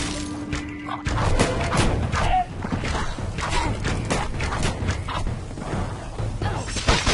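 Magic spells crackle and burst in quick succession.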